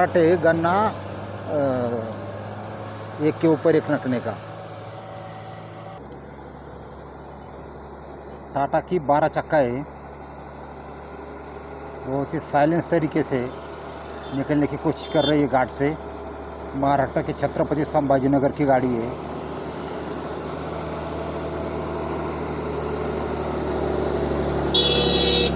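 A heavy truck engine rumbles as a truck drives past.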